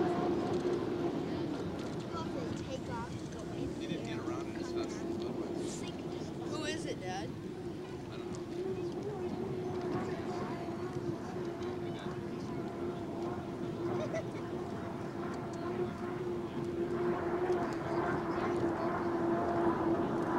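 A racing boat's engine drones steadily at a distance, then grows louder.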